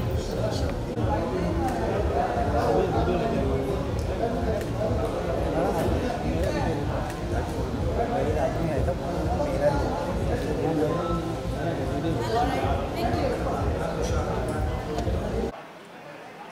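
A noisy crowd chatters loudly.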